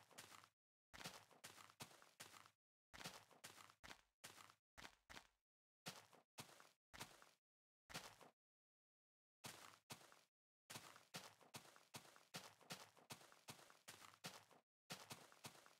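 Footsteps swish through grass in quick, short runs.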